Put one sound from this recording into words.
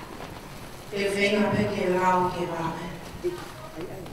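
A woman's voice rings out loudly nearby.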